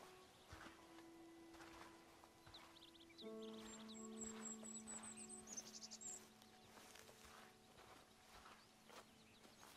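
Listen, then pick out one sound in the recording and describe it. Footsteps rustle softly through dry grass.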